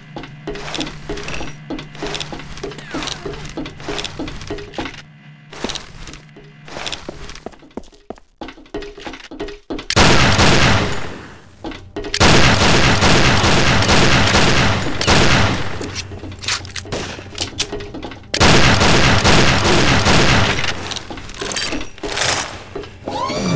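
Footsteps clank quickly on a metal floor.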